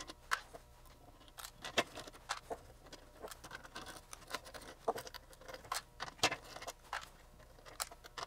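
A screwdriver scrapes and clicks against metal.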